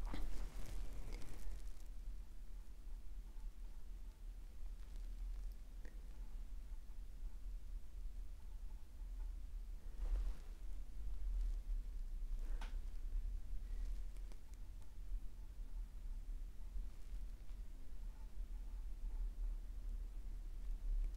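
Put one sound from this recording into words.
A paintbrush softly strokes across a canvas.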